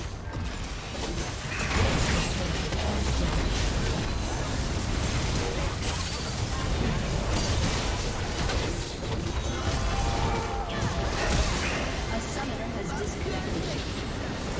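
Magic blasts crackle and boom in a busy fight.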